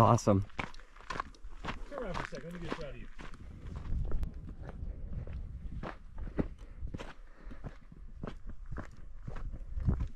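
Footsteps crunch steadily on gritty rock and gravel.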